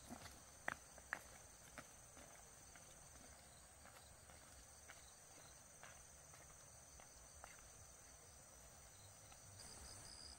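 Footsteps crunch on a dirt path and fade into the distance.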